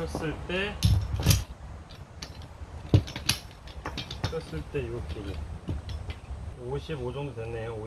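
Metal parts clink and click.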